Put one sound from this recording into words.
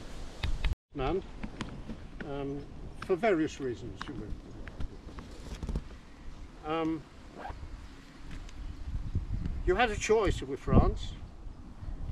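An elderly man reads out calmly, close by, outdoors.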